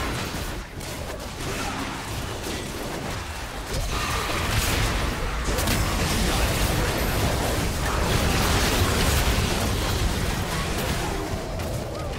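Game spell effects whoosh, blast and crackle in a busy fight.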